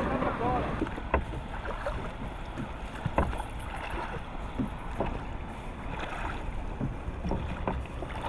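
Oars creak and thump against a wooden boat.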